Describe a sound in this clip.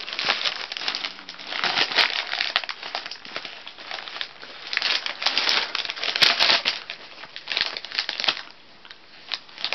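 Wrapping paper crinkles and rustles loudly, close by.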